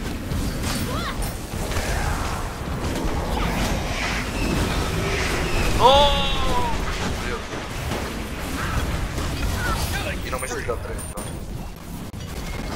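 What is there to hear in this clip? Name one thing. Game character attacks clash and hit with sharp impacts.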